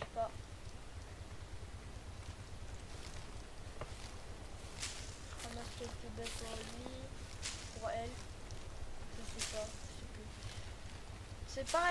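Leaves rustle as plants are picked by hand.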